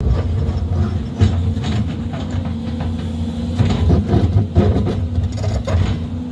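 An excavator bucket scrapes and knocks against dirt and rock.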